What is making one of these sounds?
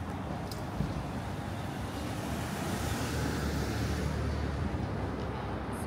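A car drives past on a nearby street.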